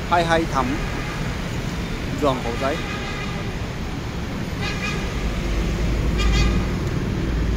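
Motorbikes and cars drive past on a busy street.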